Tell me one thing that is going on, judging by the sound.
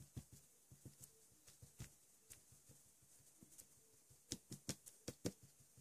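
Soft clay is pressed and squeezed between fingers with faint sticky taps.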